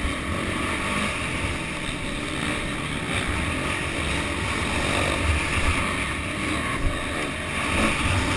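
A dirt bike engine roars loudly up close.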